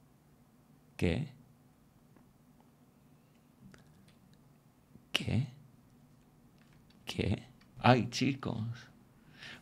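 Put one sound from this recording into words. A young man speaks in short, animated bursts close to a microphone, with long pauses between.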